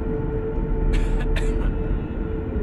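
A woman coughs nearby.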